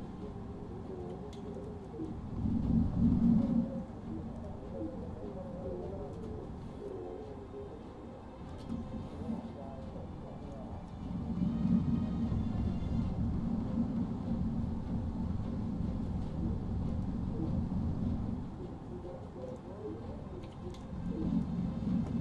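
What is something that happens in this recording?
Heavy aircraft engines drone low and steadily, swelling louder at times.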